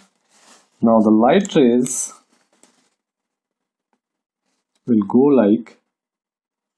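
A young man speaks calmly and close by, in short phrases.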